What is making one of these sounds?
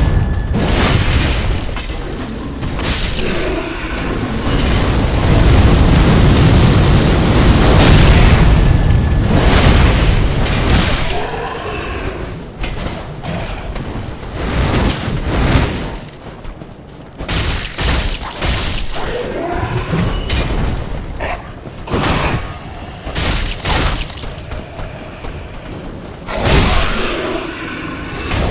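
Metal blades clash and strike in quick bursts.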